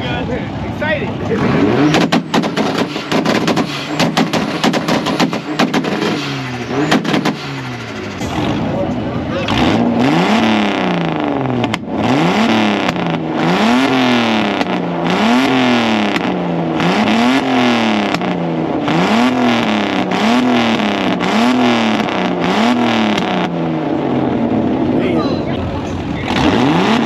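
A car engine revs up and down over and over, loud and close.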